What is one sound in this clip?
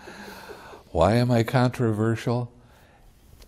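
An elderly man speaks loudly and with animation.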